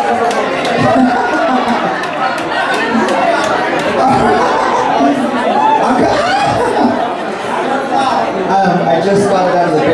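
A young man talks with animation through a microphone over loudspeakers.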